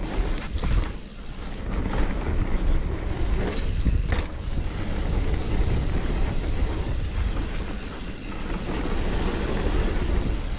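Bike tyres roll and crunch over a dirt trail.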